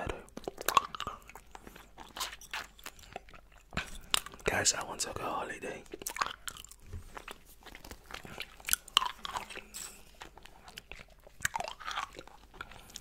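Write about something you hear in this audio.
A man makes wet mouth and lip sounds close to a microphone.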